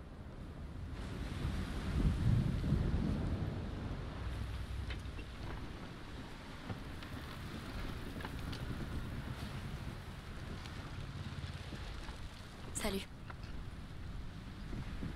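Waves surge and break around a wooden ship.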